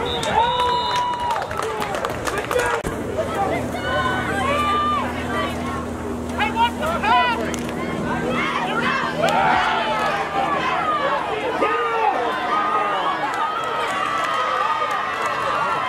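A man on the sideline shouts loudly.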